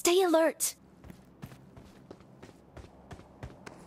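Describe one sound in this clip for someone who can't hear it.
Footsteps tread quickly over dirt.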